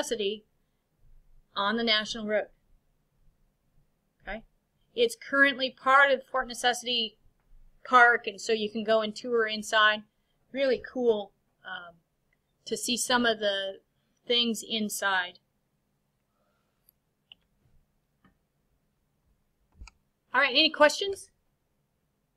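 A woman talks calmly into a computer microphone, with pauses.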